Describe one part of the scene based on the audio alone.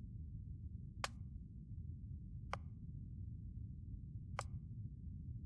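A game menu gives short, sharp clicks as options are selected.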